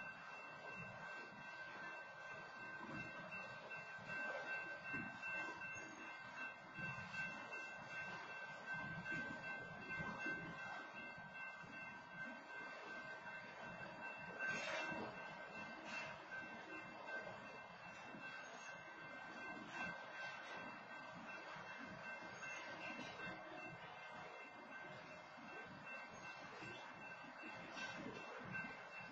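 Train wheels squeal steadily on the rails.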